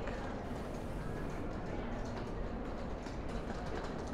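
A suitcase rolls on its wheels over a tiled floor.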